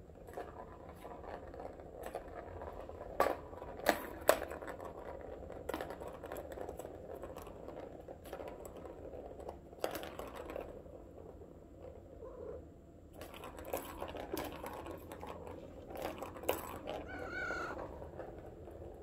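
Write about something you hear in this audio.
A ball rattles and rolls around inside a plastic cat toy track.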